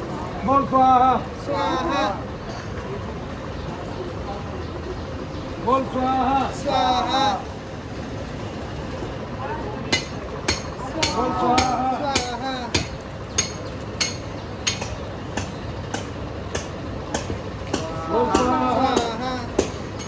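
A man speaks nearby in short phrases.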